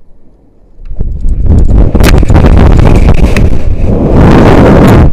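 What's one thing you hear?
Loud wind roars past the microphone during a fast fall.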